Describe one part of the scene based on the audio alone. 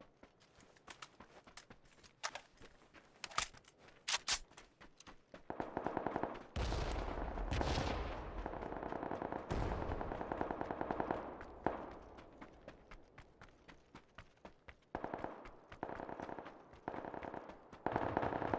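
Footsteps crunch quickly over dry sand and gravel.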